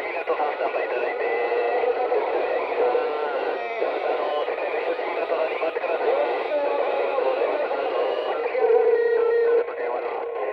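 A radio receiver hisses and crackles with a noisy, muffled transmission.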